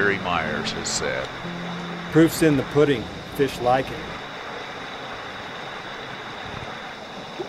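A shallow stream ripples and burbles over stones.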